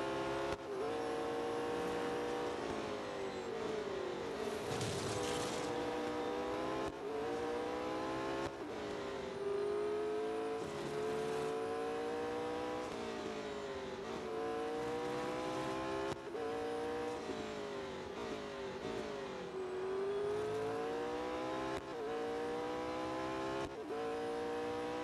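A racing car engine roars at high revs, climbing in pitch and dropping sharply with each gear change.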